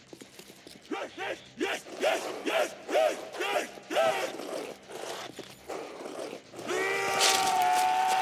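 A gun fires several quick shots.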